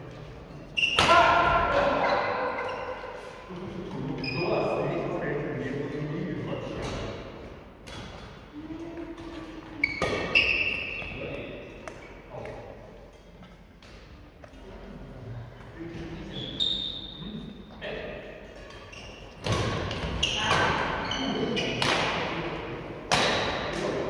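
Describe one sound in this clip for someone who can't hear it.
Adult players talk and call out across the court, heard from a distance.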